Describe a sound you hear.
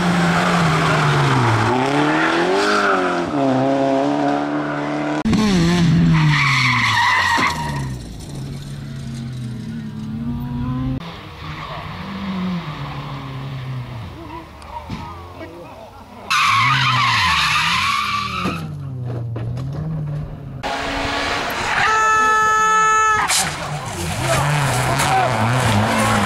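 A rally car engine revs hard and shifts through gears.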